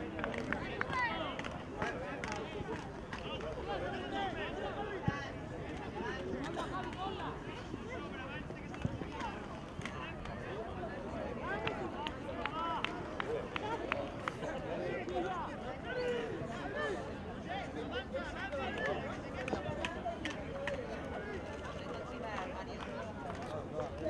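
Young players shout and call to each other outdoors.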